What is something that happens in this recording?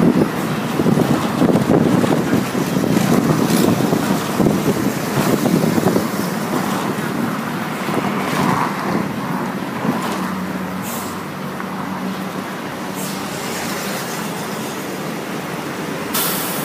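Traffic rumbles steadily past on a busy road.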